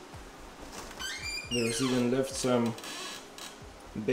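A freezer lid creaks open.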